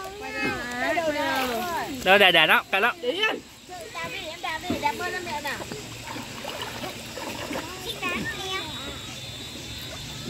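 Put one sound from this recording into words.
Young women talk and coo with animation close by.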